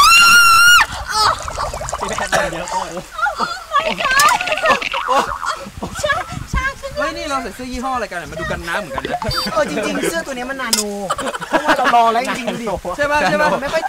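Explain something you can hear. Young men and women chatter and talk over one another.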